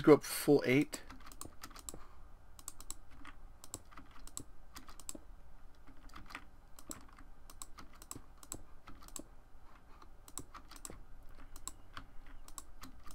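Stone blocks are set down with soft, quick clicks, one after another.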